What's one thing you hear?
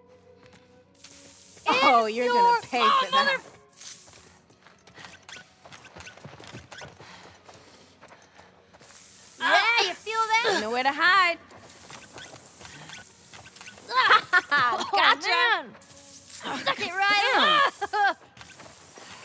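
A water gun sprays with a hissing rush.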